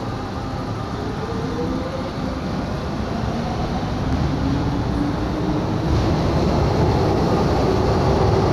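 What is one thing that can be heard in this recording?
A train's motor whines, rising in pitch as it gathers speed.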